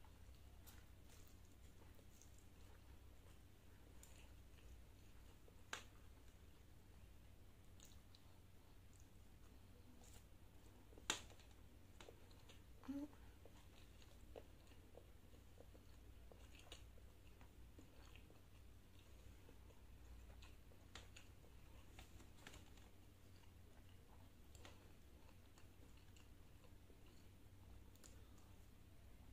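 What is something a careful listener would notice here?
A young woman chews and slurps food close to a microphone.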